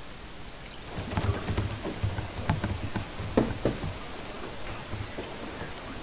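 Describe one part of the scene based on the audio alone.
Sea water rushes past a sailing ship's hull.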